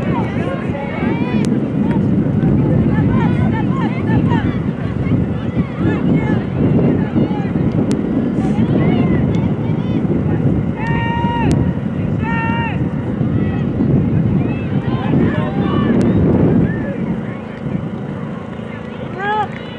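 Young women players shout and call out to each other across an open field.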